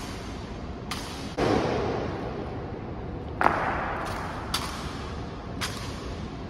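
Boots stamp sharply on a stone floor, echoing through a large hall.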